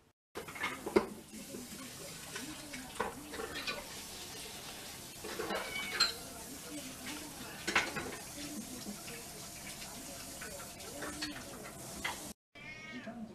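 Cats meow loudly and eagerly.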